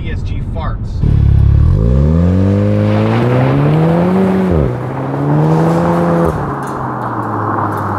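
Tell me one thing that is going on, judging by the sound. A car engine revs hard and roars as the car speeds away, rising in pitch between gear changes.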